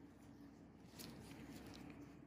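A cloth rubs softly against skin.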